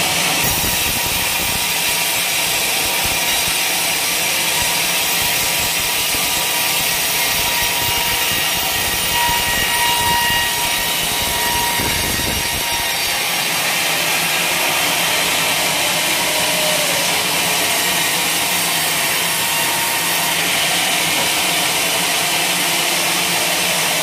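A band saw whines steadily as it cuts through a large log.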